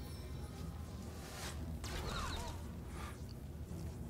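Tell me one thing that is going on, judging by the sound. A magic bolt whooshes through the air.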